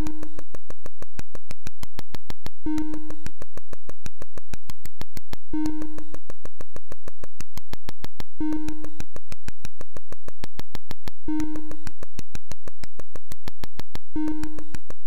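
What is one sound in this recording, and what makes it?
A short electronic beep from a retro video game sounds every few seconds.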